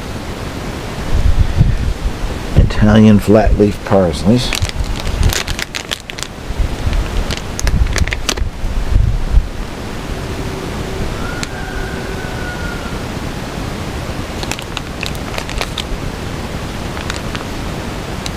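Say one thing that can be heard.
Plastic plant pots rustle and knock as they are handled.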